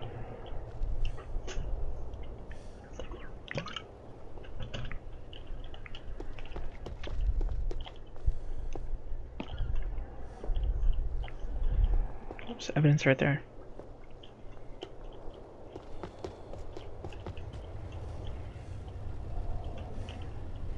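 Footsteps thud softly on pavement.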